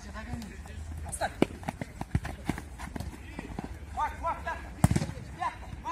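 A football is kicked on an artificial turf pitch outdoors.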